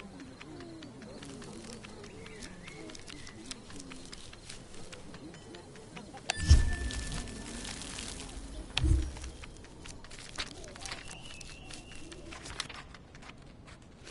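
Light footsteps patter quickly across a floor.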